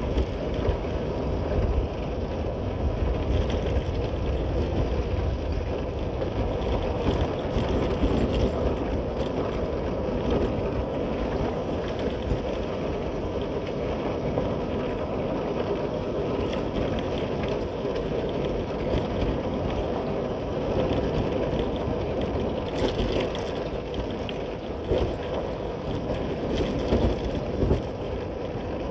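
Tyres crunch and rumble over a rough dirt track.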